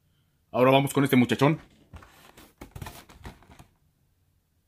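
A plastic toy package crinkles as a hand handles it.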